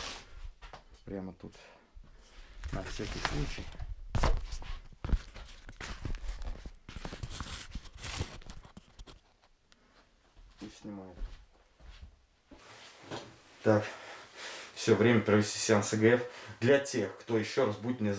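A man speaks quietly and close by, his voice muffled.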